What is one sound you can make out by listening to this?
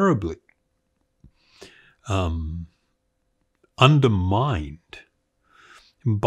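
An elderly man speaks calmly and thoughtfully, close to a microphone, in short bursts with pauses.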